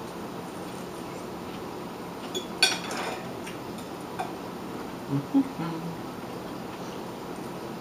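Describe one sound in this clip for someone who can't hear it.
A man chews food with his mouth open.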